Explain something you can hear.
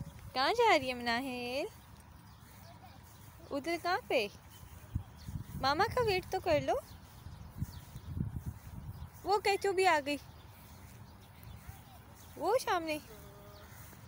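A little girl squeals and calls out in a high voice nearby.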